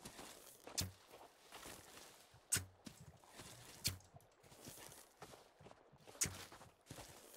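A wooden stick strikes a tree trunk with sharp, loud knocks.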